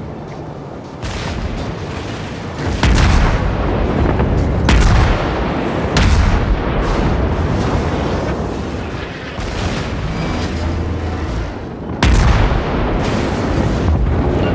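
Heavy naval guns fire in loud booming blasts.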